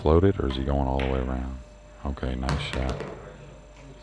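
A ball drops into a pocket with a dull knock.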